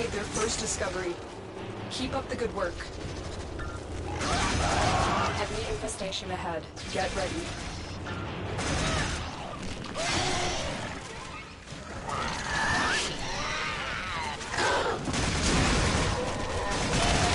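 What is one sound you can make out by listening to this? A blade swooshes and clashes in quick blows.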